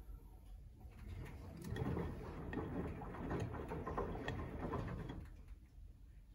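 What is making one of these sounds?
Water sloshes and laundry tumbles inside a turning washing machine drum.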